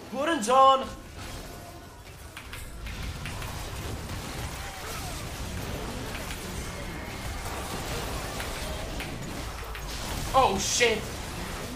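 Video game combat sounds clash and crackle throughout.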